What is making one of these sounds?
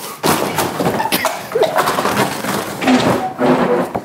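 A young man crashes down into boxes.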